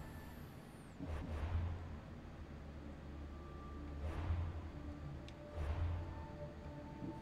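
Soft whooshing game menu sounds play as pages change.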